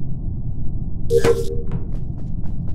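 A bright electronic chime sounds as a task finishes.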